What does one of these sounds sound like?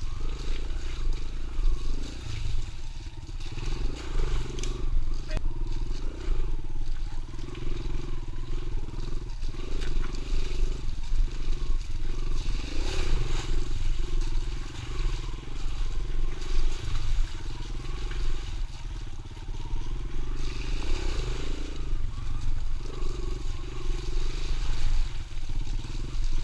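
A dirt bike engine revs and drones up close, rising and falling.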